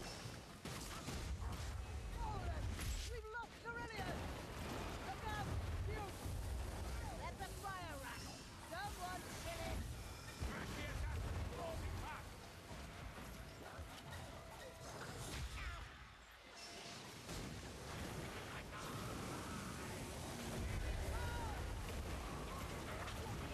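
Fire crackles.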